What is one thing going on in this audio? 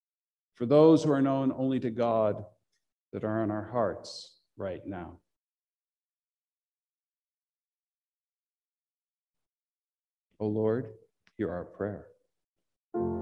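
A middle-aged man speaks calmly into a microphone in a small echoing room.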